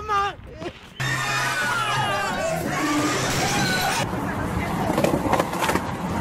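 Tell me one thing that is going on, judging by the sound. A group of men and women laugh and shout excitedly.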